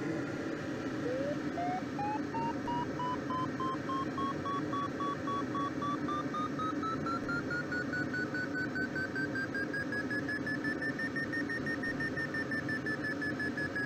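A glider's variometer beeps rapidly, its pitch climbing higher.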